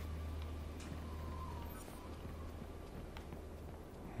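Footsteps scuff on hard ground.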